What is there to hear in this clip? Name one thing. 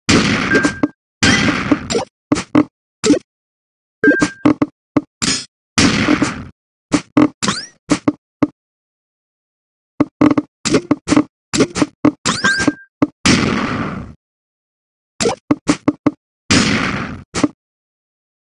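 Rows of blocks clear with a bright electronic burst.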